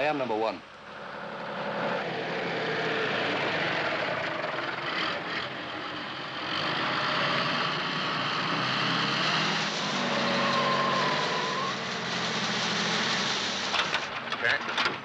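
A truck engine rumbles steadily as the truck drives past.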